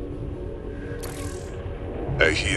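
An electronic interface gives a short bright chime.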